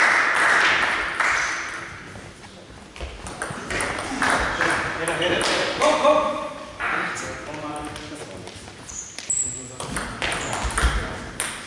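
A table tennis ball clicks back and forth between paddles and bounces on the table.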